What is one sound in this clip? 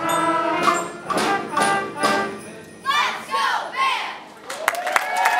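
A school band plays a piece and finishes on a final chord.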